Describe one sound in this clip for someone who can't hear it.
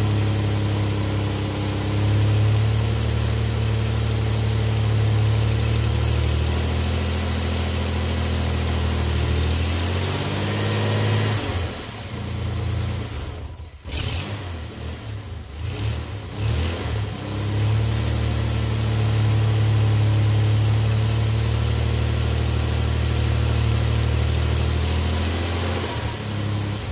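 A pickup's engine idles with a steady low drone.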